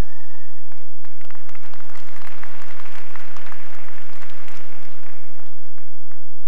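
A large crowd claps in an echoing hall.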